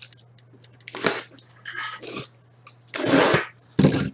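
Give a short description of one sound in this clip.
A knife slits packing tape on a cardboard box.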